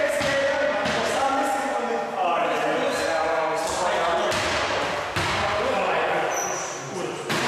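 A basketball thumps against the floor and hoop.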